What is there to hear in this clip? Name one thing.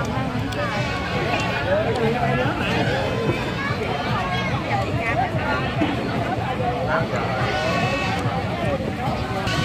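Many people chatter and talk over one another nearby.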